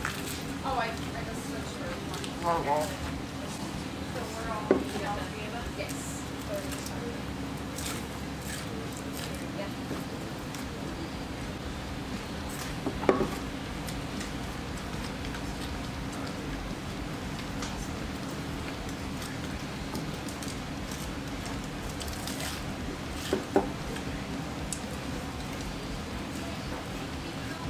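Several people chew food at a table.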